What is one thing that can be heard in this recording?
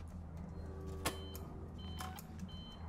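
A button clicks and beeps.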